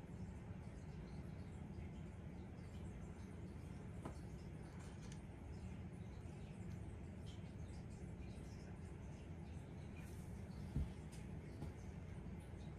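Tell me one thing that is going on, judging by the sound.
Fingers scrape and peel dried paint from a hard surface.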